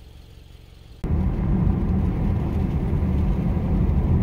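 A car's engine and tyres rumble low and steady, heard from inside.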